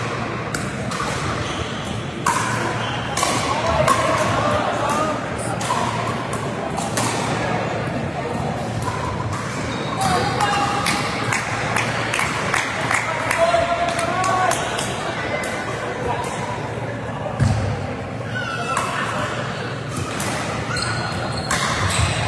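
Paddles strike a ball with sharp pops in a large echoing hall.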